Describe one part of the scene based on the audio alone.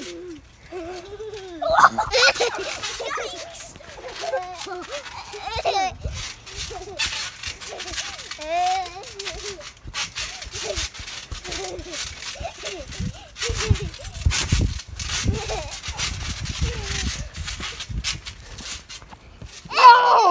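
A trampoline mat thumps and creaks under bouncing feet.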